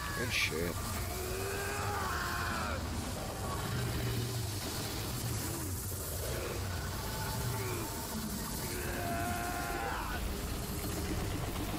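A man strains and grunts with effort.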